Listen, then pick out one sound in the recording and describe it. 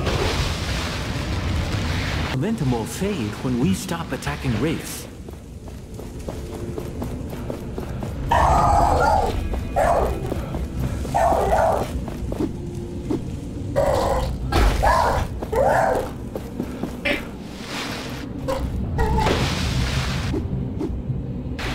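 Footsteps crunch quickly over gravel and rock.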